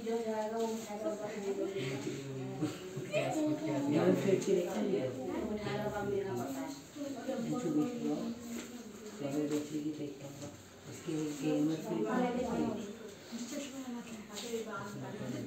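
Several young children talk and read aloud together nearby.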